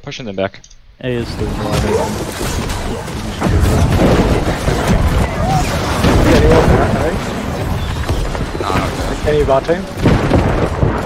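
Spells burst and weapons clash.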